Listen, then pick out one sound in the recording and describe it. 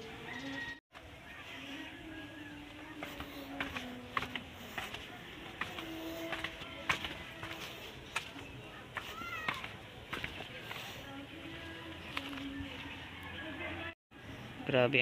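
Footsteps scuff down concrete steps outdoors.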